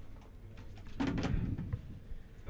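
Billiard balls click together.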